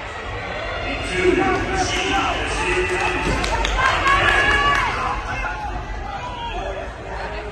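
A crowd of spectators cheers and shouts in an echoing indoor hall.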